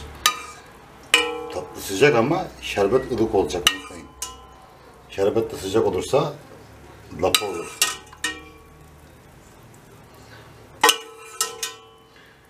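A metal ladle clinks and rings against a steel pot.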